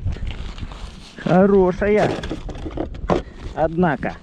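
A fish thumps against a plastic sled.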